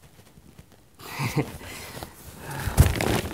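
A young man speaks quietly up close.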